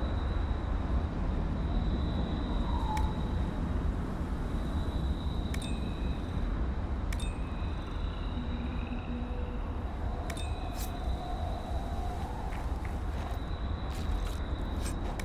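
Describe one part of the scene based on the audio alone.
A low wind rumbles steadily outdoors.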